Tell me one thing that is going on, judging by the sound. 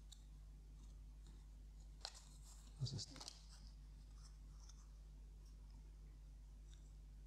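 Playing cards rustle and slide as they are sorted by hand.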